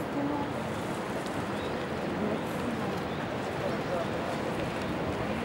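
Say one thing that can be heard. A thin stream of water splashes steadily into water.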